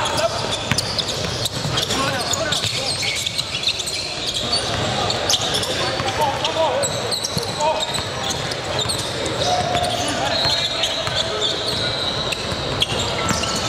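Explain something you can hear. A basketball bounces on the court with sharp thuds.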